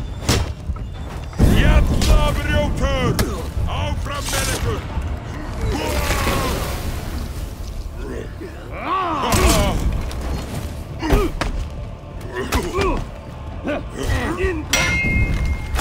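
Metal weapons clash and clang repeatedly.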